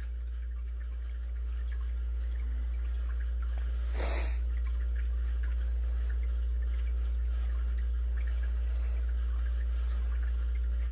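A pet water fountain hums steadily.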